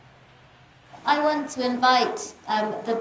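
A woman speaks clearly to a gathered group.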